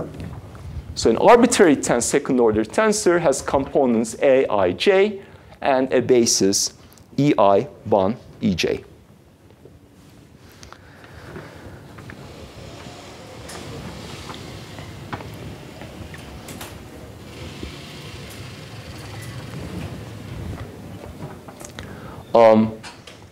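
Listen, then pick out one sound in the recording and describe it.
A man speaks calmly through a close microphone, as if lecturing.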